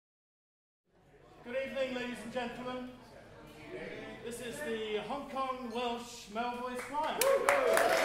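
An older man speaks with animation to a group.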